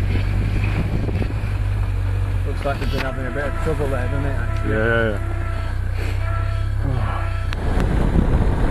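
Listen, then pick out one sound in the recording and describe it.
A vehicle engine hums steadily while driving over rough ground.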